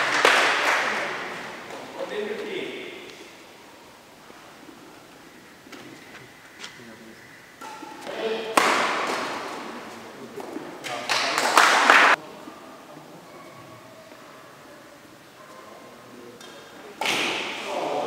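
Young men shout and cheer in a large echoing hall.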